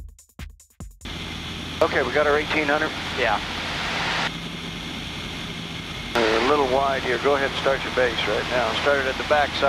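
A small propeller plane's engine drones steadily in flight.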